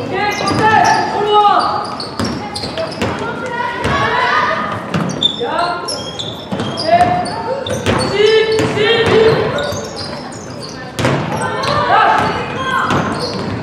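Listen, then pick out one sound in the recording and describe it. A basketball bounces on a hard wooden floor.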